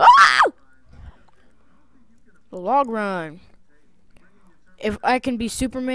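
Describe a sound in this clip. A young person talks with animation into a headset microphone, in short bursts.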